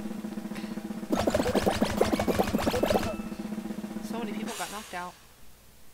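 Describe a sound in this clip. A bright electronic game jingle plays loudly, then fades.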